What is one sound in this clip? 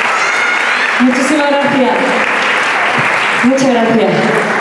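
A woman sings loudly through a microphone and loudspeakers in an echoing hall.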